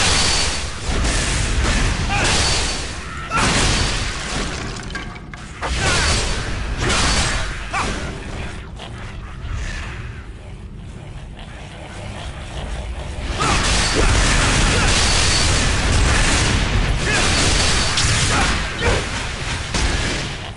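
Game combat sounds clash and burst with loud spell effects.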